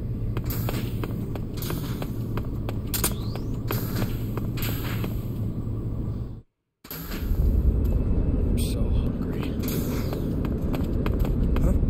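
Quick footsteps run over a hard floor.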